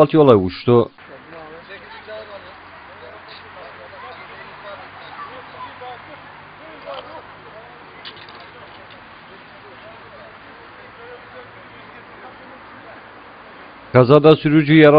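Several men talk quietly at a distance outdoors.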